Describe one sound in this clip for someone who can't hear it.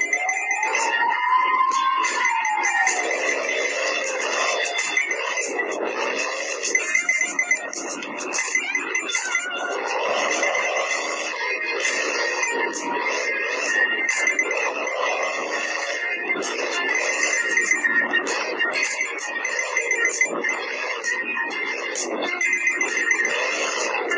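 Coins chime in quick pings as they are collected.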